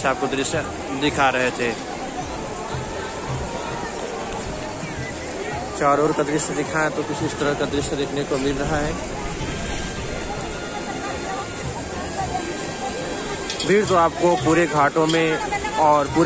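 A river's water rushes steadily.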